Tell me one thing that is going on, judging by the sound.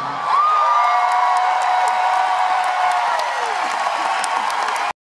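A rock band plays live in a large echoing arena.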